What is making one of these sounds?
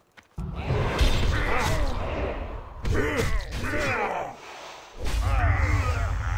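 Weapons clash and spells burst in a game fight.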